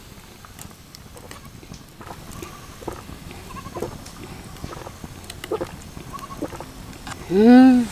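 A young woman gulps down a drink.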